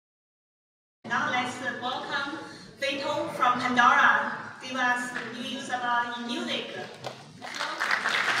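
A woman speaks into a microphone over loudspeakers in a large hall.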